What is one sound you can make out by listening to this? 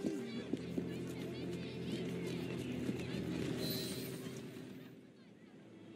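Horse hooves clop and carriage wheels rattle on a cobbled street.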